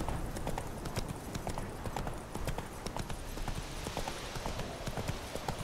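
A horse gallops steadily, its hooves pounding on a dirt path.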